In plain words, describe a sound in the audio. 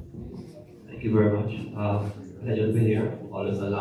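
A man speaks loudly into a microphone, heard through a loudspeaker in an echoing room.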